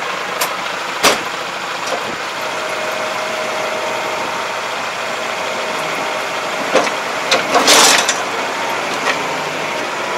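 Metal parts of a farm implement clank and rattle.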